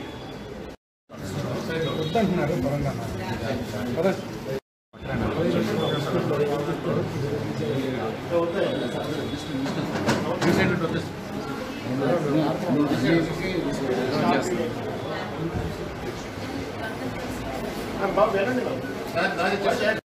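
Several men and women talk at once, excitedly, nearby in an echoing room.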